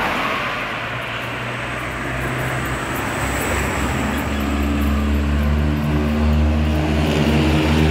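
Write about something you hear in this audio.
Cars drive along the road nearby.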